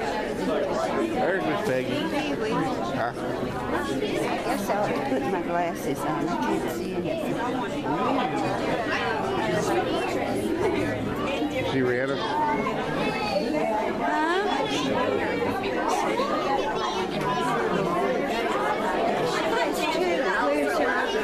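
A crowd of people chatters all around in a busy, echoing room.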